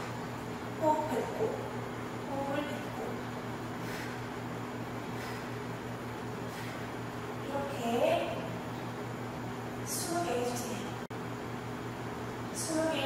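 A young woman speaks calmly and softly nearby.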